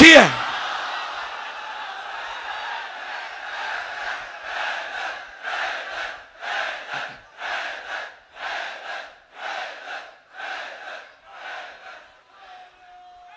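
A large crowd of men chants together in a steady rhythm.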